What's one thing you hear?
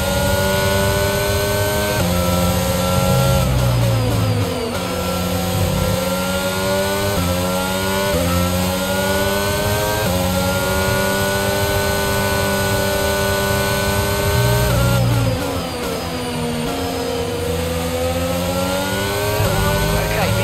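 A racing car engine whines loudly, climbing in pitch through each gear and dropping sharply at every shift.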